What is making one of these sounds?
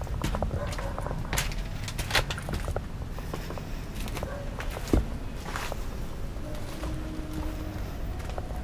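A young man speaks quietly and closely into a microphone.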